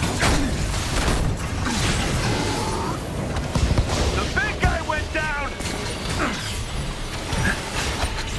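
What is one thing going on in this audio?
Explosions and blasts boom repeatedly in a heavy fight.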